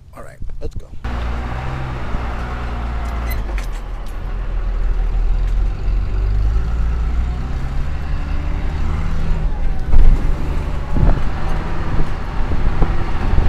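A vehicle rattles and bumps over a rough dirt track.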